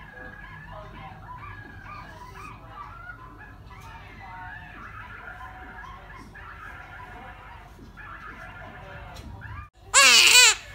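A newborn baby whimpers and grunts softly close by.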